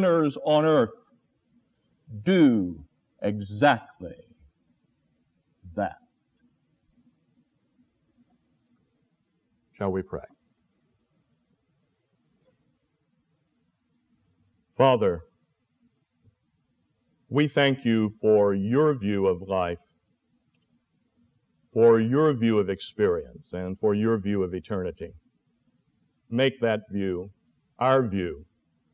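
An elderly man speaks calmly, with long pauses.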